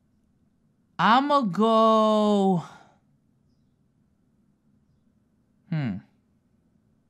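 A young man calls out loudly into a close microphone, in a long drawn-out exclamation.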